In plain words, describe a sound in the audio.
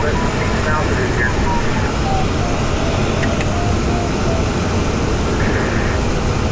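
Air rushes loudly and steadily past a glider's canopy.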